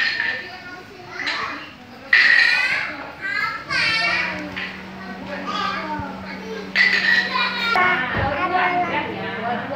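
Young children talk and chatter nearby.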